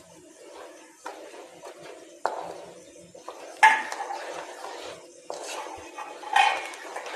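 A wooden spatula stirs and scrapes thick batter in a metal pan.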